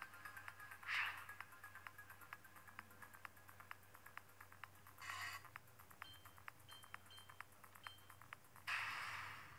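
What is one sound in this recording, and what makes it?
Small buttons click repeatedly under a thumb.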